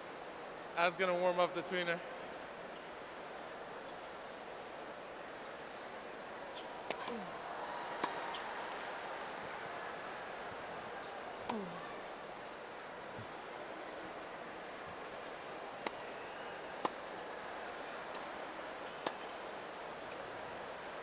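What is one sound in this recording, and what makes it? A large crowd murmurs steadily in a big open arena.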